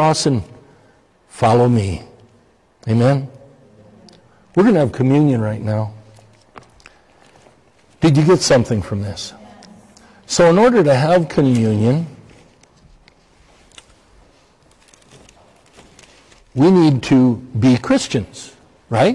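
An older man speaks slowly and deliberately through a microphone, with pauses, in a large echoing hall.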